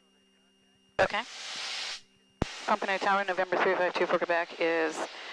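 A woman speaks calmly over a headset intercom.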